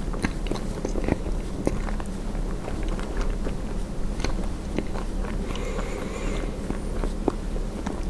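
A person chews food close to a microphone with wet, crunchy clicks.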